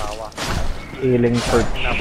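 Flames burst with a roar.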